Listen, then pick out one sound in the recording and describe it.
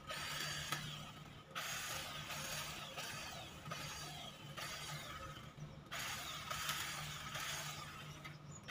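Garden shears snip and rustle through a low hedge, in bursts.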